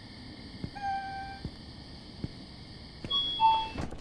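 An automatic glass door slides open.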